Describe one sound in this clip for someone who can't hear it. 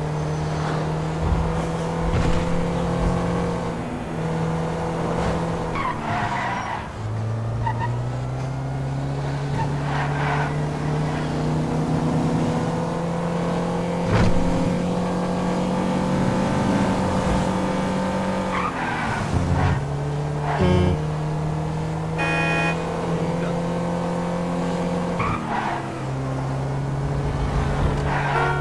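A car engine hums steadily, rising and falling in pitch as it shifts gears.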